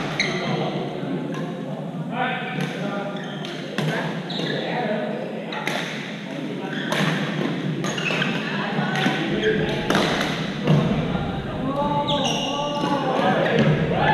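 Sounds echo through a large hall.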